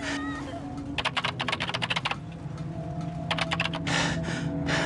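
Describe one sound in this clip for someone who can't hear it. A typewriter-like machine clatters with rapid clicks.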